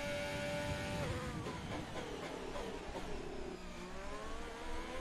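A racing car engine drops in pitch through quick downshifts, then revs up again.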